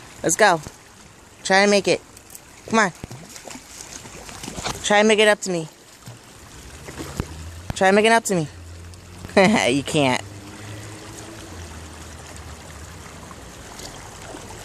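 Water ripples and laps gently.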